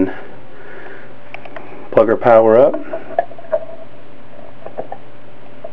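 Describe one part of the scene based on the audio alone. A plug clicks into a wall socket.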